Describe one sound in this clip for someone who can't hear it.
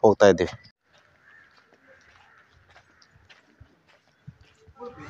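Footsteps shuffle on a dirt road outdoors.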